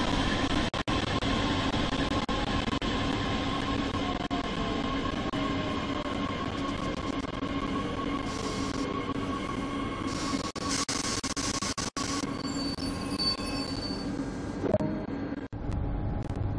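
A train rumbles along the rails and slows to a stop.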